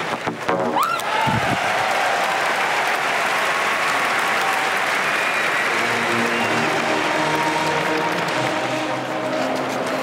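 A stadium crowd cheers loudly after a jump.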